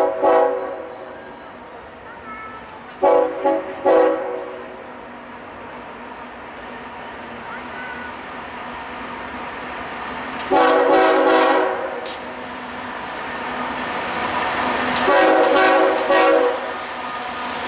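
A train horn blares in loud repeated blasts.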